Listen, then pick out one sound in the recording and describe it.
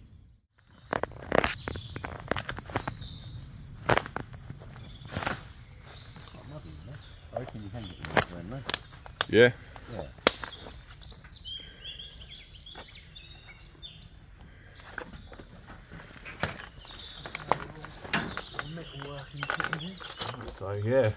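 Footsteps crunch on twigs and dry debris.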